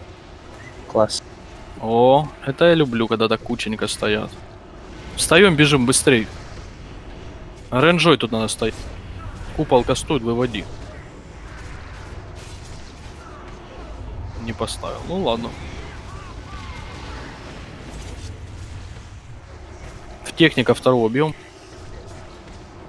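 Spell effects whoosh and crackle during a battle.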